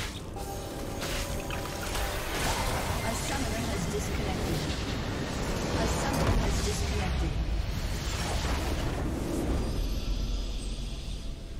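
Video game battle sound effects crash and rumble.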